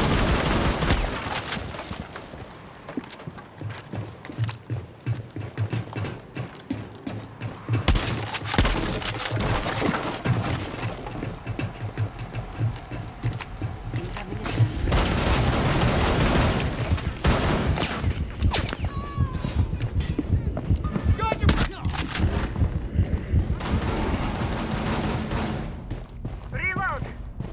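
Footsteps thud quickly on hard floors.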